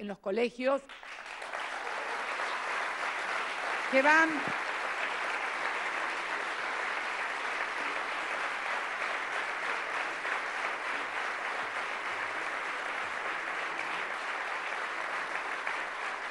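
A large audience applauds steadily in a big hall.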